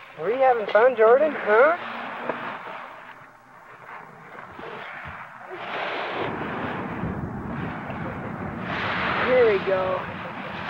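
A small child squeals and babbles in a high voice close by.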